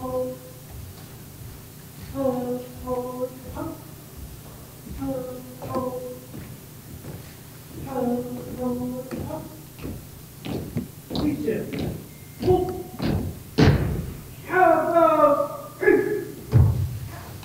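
A man calls out drawn-out drill commands loudly in a large echoing hall.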